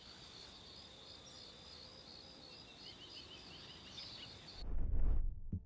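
Wind rustles softly through leaves outdoors.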